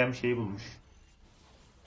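A man speaks briefly and loudly, close to a microphone.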